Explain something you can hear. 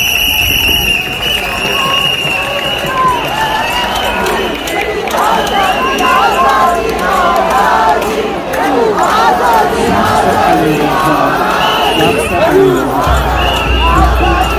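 A large crowd of men and women chants and shouts together outdoors.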